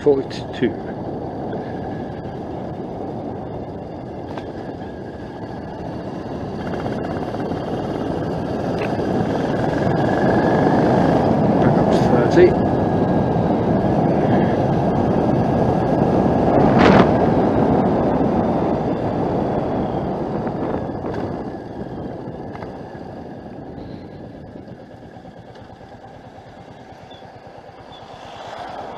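A motorcycle engine hums steadily, rising as the bike speeds up and easing off as it slows.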